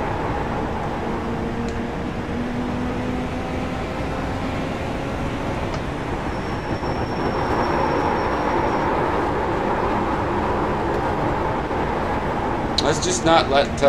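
A race car engine roars steadily, rising and falling in pitch through the gears.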